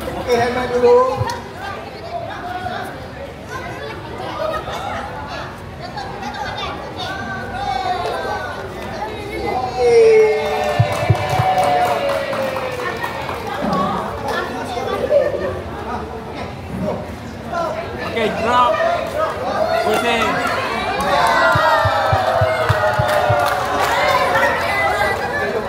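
A crowd of children chatter and call out.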